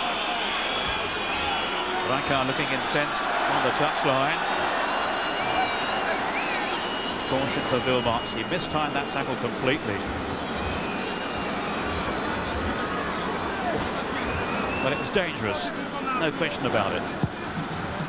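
A crowd chants loudly in a big open stadium.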